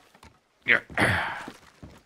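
A body thuds onto wooden boards.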